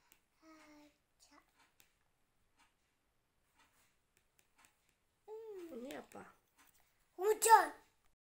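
A young boy speaks softly close by, in short bursts.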